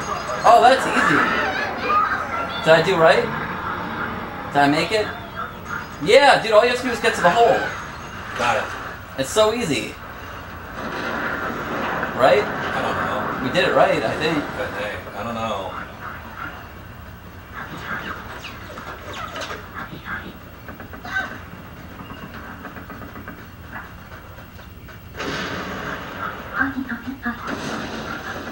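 Video game music and effects play from a television loudspeaker in a room.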